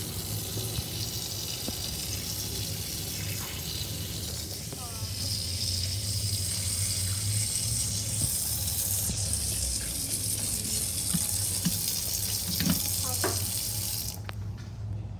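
Water from a tap splashes steadily into a metal sink.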